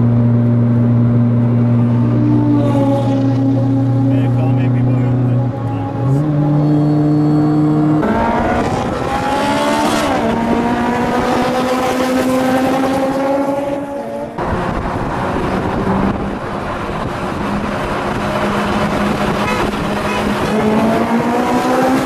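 A car engine roars loudly at high speed, its pitch rising and falling.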